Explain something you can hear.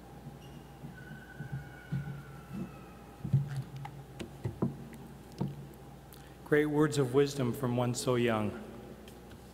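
A man speaks calmly into a microphone over loudspeakers.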